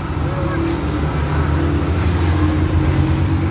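A motorized tricycle engine runs close by.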